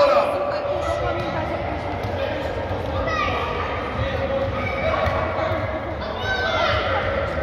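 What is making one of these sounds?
A ball thuds on the floor.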